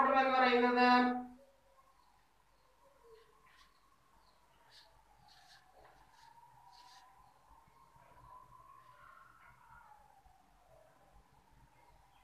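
A marker squeaks faintly on paper.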